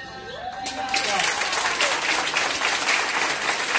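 A group of people applaud loudly.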